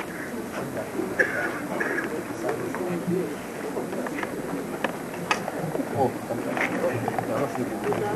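A man speaks calmly through a loudspeaker.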